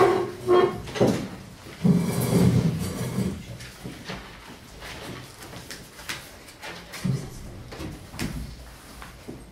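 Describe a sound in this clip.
An older man speaks calmly nearby.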